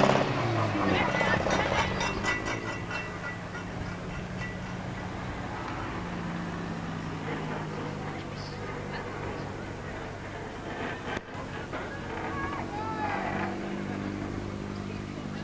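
Racing car engines roar and drone around a track nearby.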